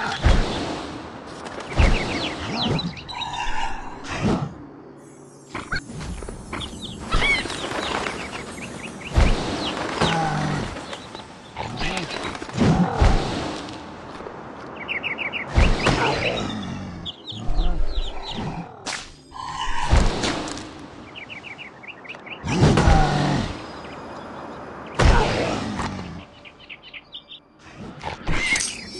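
Game sound effects crash and chime in quick bursts.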